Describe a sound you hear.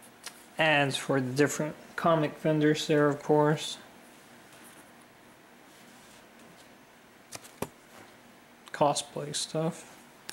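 Paper cards rustle softly as they are handled and laid down.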